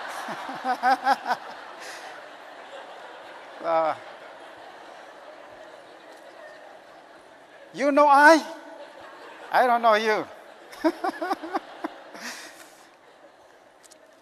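A middle-aged man laughs into a microphone.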